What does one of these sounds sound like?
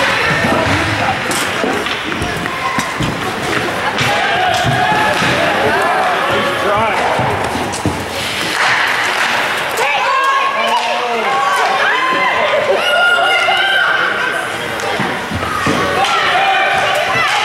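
A crowd of spectators cheers and shouts in a large echoing rink.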